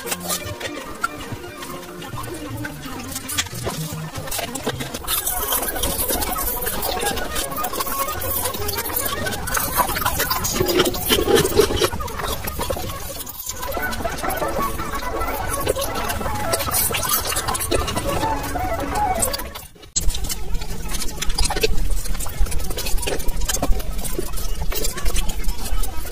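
Wet licking and sucking sounds from a mouth close to a microphone.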